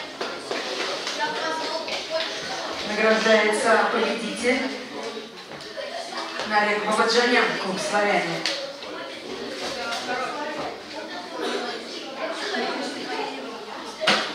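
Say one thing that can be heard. A man announces through a loudspeaker in a large echoing hall.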